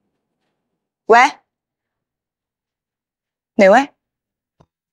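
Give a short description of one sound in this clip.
A young woman says a few short words into a phone.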